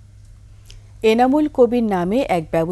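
A woman speaks clearly into a microphone, reading out calmly.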